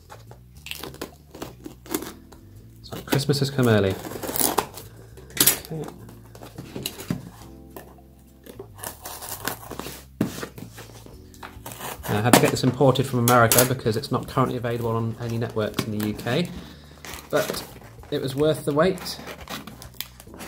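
Hands slide and tap a cardboard box.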